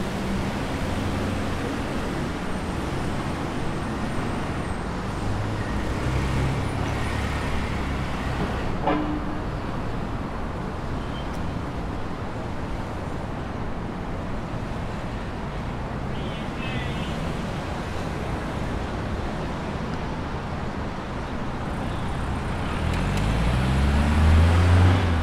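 City traffic hums steadily all around outdoors.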